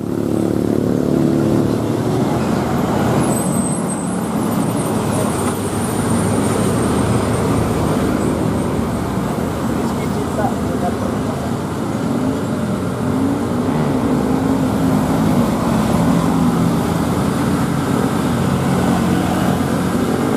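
Motor scooters ride past.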